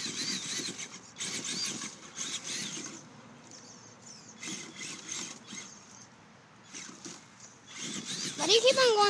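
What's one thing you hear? Small tyres scrabble over dirt and dry twigs.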